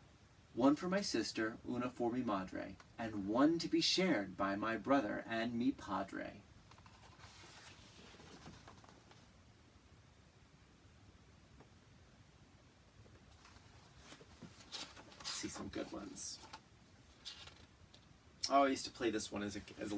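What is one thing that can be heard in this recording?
A man reads aloud with animation, close by.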